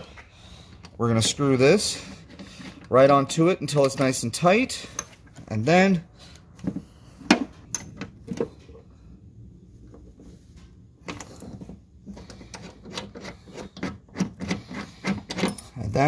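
A hand tool clicks and scrapes against metal.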